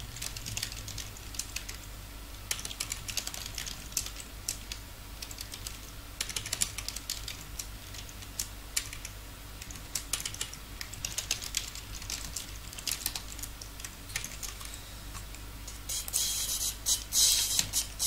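Magic spells crackle and chime in a video game.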